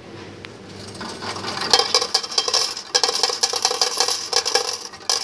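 Coins clatter and jingle as they drop into a metal tray.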